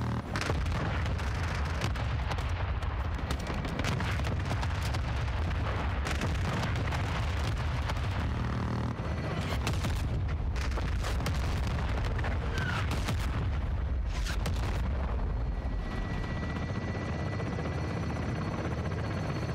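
Explosions rumble and boom steadily in the distance.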